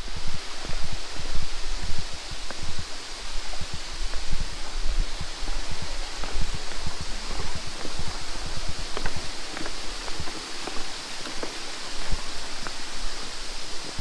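A stream rushes steadily below.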